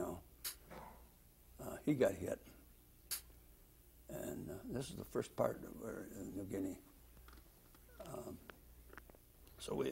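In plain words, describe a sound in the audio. An elderly man speaks slowly and haltingly, close to a microphone, with pauses between phrases.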